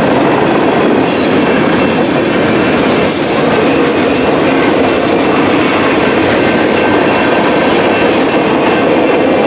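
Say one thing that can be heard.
Train wheels squeal sharply on the rails.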